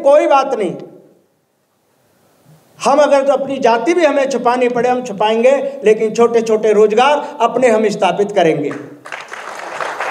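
A middle-aged man sings with feeling into a microphone.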